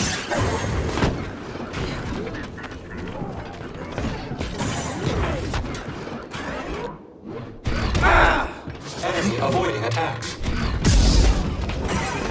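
Metal robots clang and crash as they are struck down.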